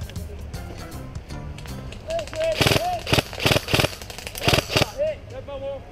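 An airsoft rifle fires rapid bursts of sharp pops close by.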